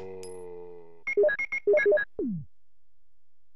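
Menu beeps chirp in quick succession.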